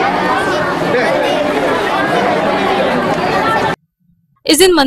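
A crowd of people chatters noisily outdoors.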